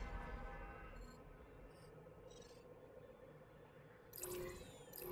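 Soft electronic menu blips sound as a game map selection changes.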